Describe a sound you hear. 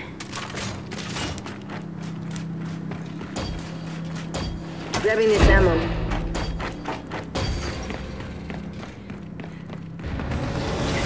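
Heavy boots thud on metal floors as a soldier runs.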